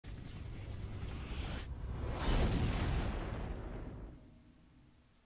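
A deep whooshing rumble swells to a loud boom and then fades away.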